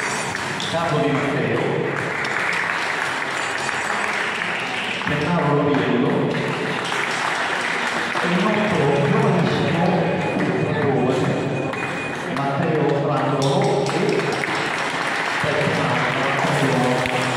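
A mixed choir sings in a reverberant hall.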